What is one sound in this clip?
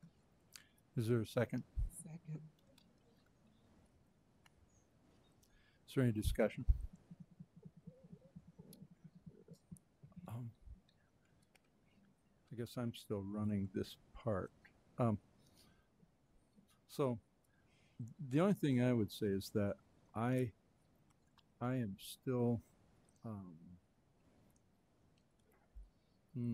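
A man speaks slowly into a microphone, with long pauses.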